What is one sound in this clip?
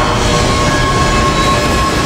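A subway train rumbles loudly past.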